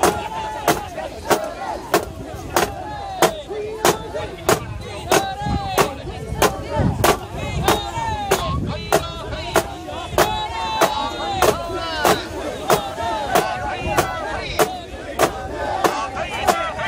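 A crowd of men chants loudly together in rhythm outdoors.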